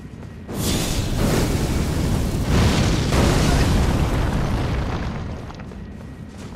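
A fireball roars and bursts with a loud whoosh.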